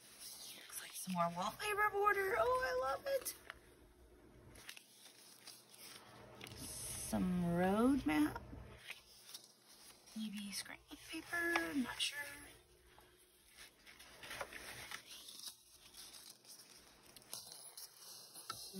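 Paper rustles and crinkles as pages are handled.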